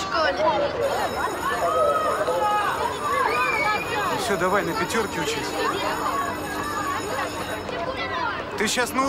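Children chatter and shout excitedly outdoors.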